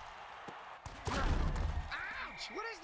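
Armoured players collide with a heavy thud.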